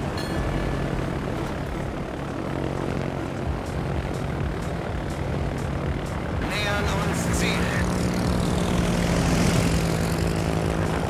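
Propeller plane engines drone steadily.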